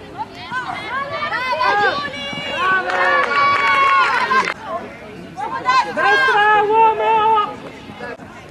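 A crowd of young women cheers loudly.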